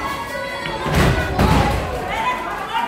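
A body slams heavily onto a wrestling mat with a loud thud.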